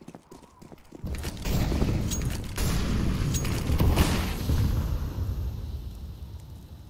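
A smoke grenade bursts and hisses loudly.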